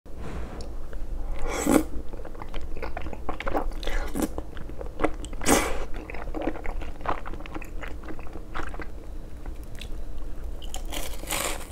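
A young man chews food wetly close up.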